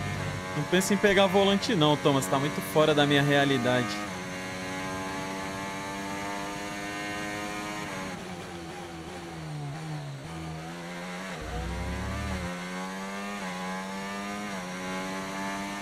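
A racing car engine whines loudly, rising and falling as it shifts gears and slows for corners.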